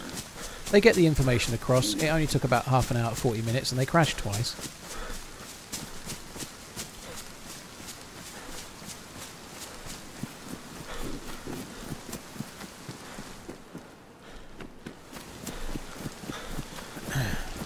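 Footsteps brush through tall grass.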